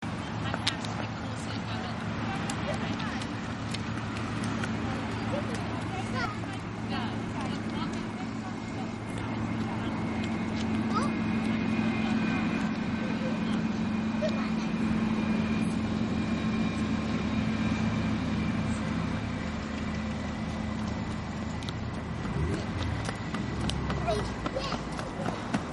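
A horse's hooves clop on a paved path.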